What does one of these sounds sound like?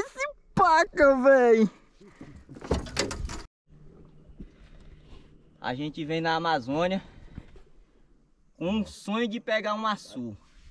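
A young man talks with animation close by.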